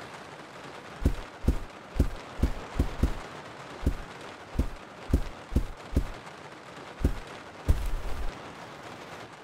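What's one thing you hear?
Footsteps thud steadily across a floor.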